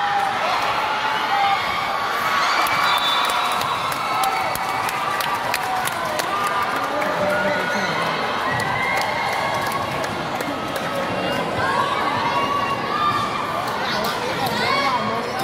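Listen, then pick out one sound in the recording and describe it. A volleyball thumps as players hit it.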